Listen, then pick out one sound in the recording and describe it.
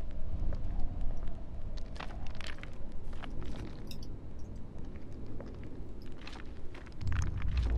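A torch fire crackles softly nearby.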